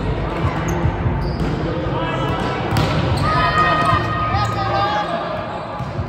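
Players' shoes squeak on a hard court.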